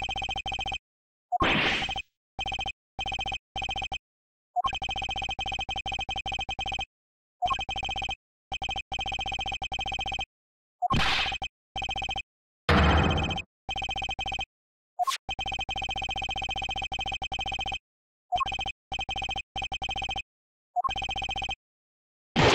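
Short electronic blips chatter rapidly in bursts as text is typed out.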